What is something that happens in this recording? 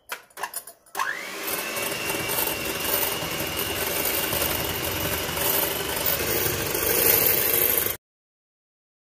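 An electric hand mixer whirs steadily as it whips in a bowl.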